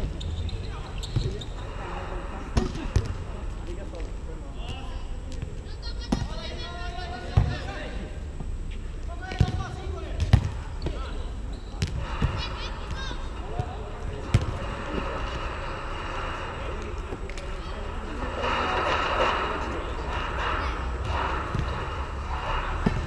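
Young men shout and call out to each other across a court, with a slight echo.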